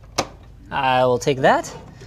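A plug pushes into a socket.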